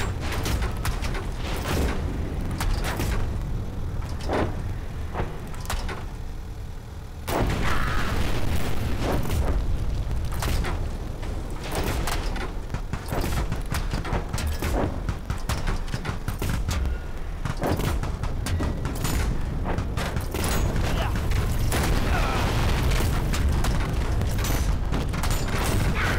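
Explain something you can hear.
Tank cannons fire again and again.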